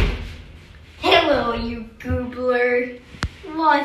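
A teenage boy speaks close to the microphone.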